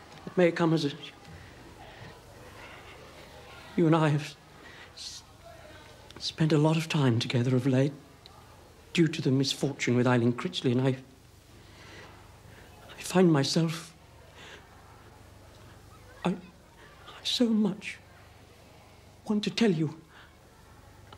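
A middle-aged man speaks close by, hesitantly and with emotion, in short broken phrases.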